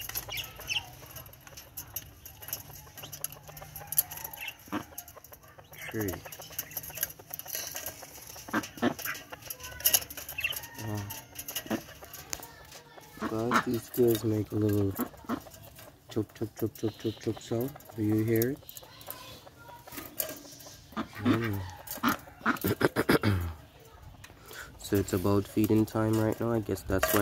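Quails scratch and shuffle about in a cage.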